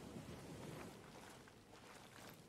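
Footsteps and gear rustle.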